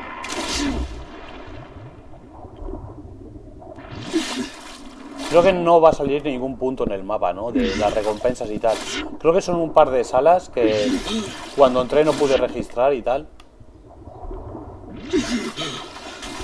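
Water splashes with swimming strokes.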